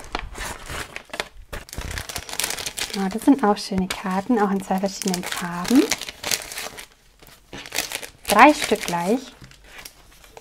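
Plastic sleeves crinkle and rustle as they are handled.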